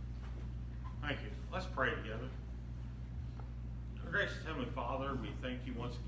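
An elderly man speaks calmly into a microphone in a large echoing room.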